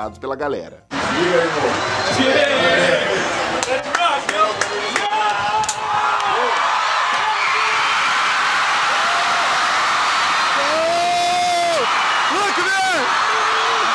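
Men shout and cheer excitedly close by.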